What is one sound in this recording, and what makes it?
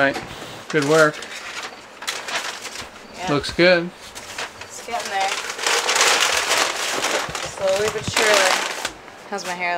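A paper bag crinkles and rustles.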